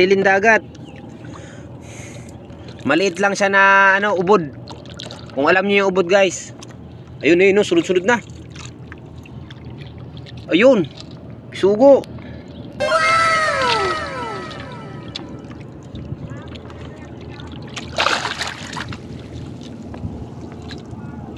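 Water laps gently against a small boat's hull.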